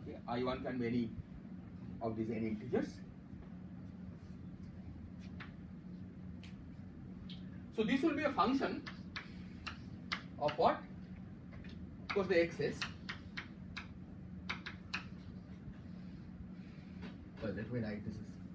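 A man speaks calmly in a lecturing tone.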